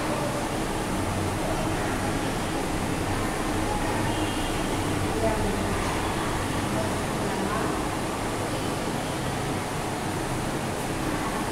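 A marker squeaks and scratches across a whiteboard.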